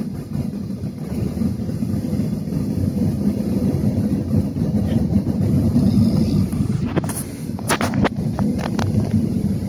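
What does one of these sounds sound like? A jet engine rumbles and hums steadily inside a plane cabin.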